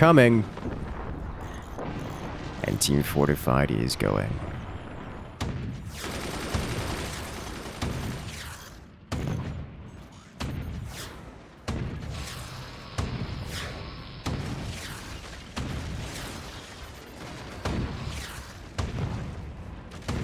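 Explosions boom again and again.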